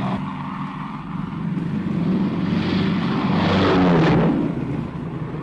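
An aircraft roars loudly as it passes low overhead.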